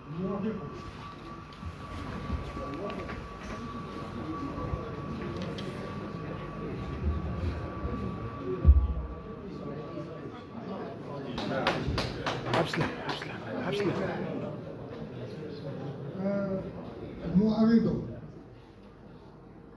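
A crowd of men murmurs and talks at once.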